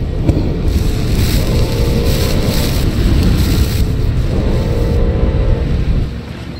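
A cutting torch hisses and crackles with sparks.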